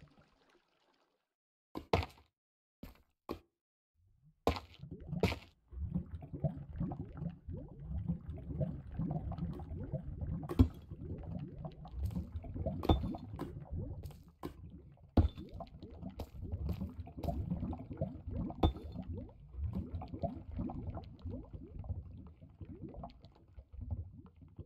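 Lava bubbles and pops now and then.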